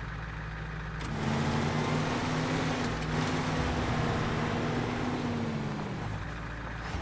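A heavy truck engine revs up loudly and roars as the truck pulls away.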